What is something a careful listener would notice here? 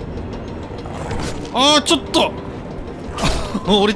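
A sword swings and clangs in combat.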